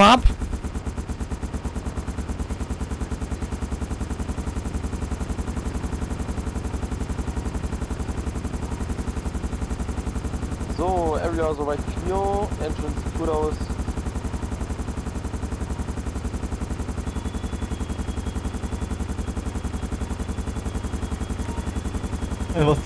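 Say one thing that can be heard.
A helicopter's rotor chops steadily close by.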